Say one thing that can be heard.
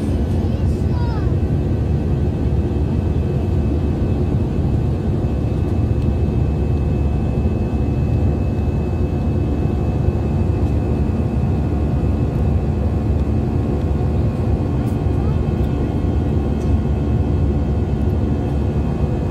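A jet engine roars steadily inside an airliner cabin in flight.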